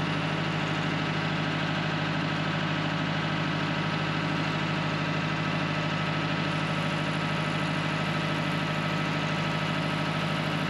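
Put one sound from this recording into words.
A tractor's diesel engine idles close by with a steady, throbbing rumble.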